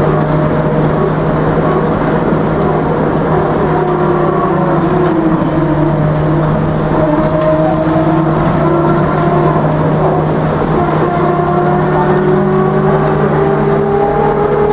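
A tram rattles and clatters on its rails.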